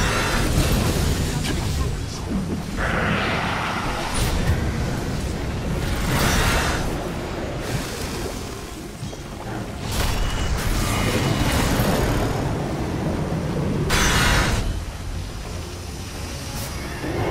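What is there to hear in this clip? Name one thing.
Fiery spell effects whoosh and crackle in a game battle.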